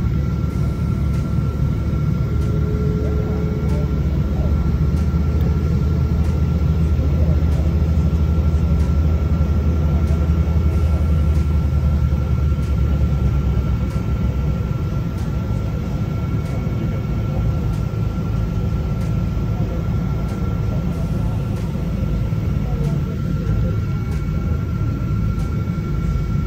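Jet engines rumble and whine steadily nearby, heard from inside an aircraft cabin.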